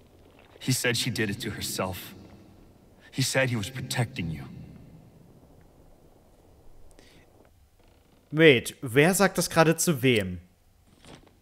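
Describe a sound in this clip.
A young man talks into a close microphone in bursts.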